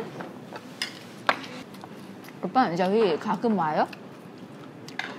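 Chopsticks and spoons clink against bowls.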